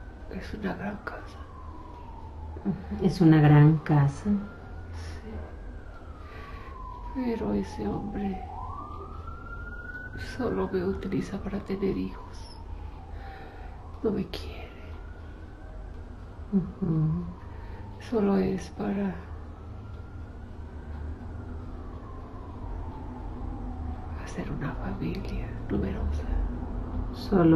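A middle-aged woman speaks calmly and softly, close by.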